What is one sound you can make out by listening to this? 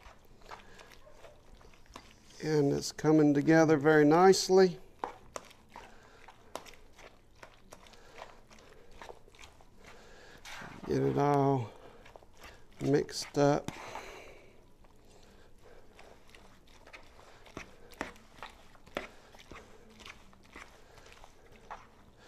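A metal spoon stirs and scrapes through a thick, wet mixture in a plastic bowl.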